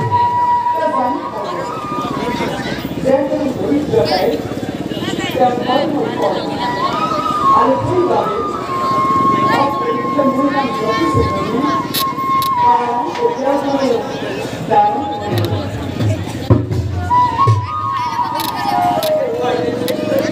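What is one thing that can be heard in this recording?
A band plays a lively melody over loudspeakers.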